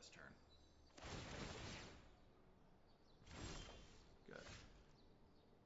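A soft magical whoosh sounds as a card is played in a game.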